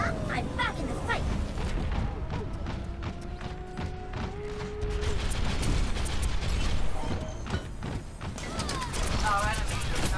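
Twin blaster guns in a video game fire rapid energy blasts.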